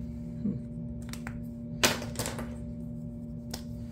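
A marker cap clicks on and off.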